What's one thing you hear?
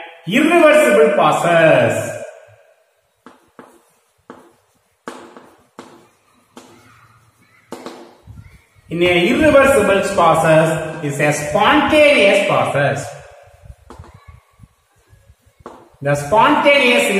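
A young man speaks clearly and steadily, close by.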